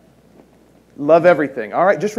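A man speaks with animation into a microphone in a large hall.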